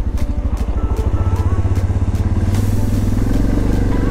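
Water splashes under motorcycle tyres.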